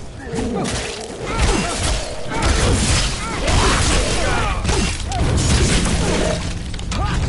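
Blades slash and strike in a fast fight.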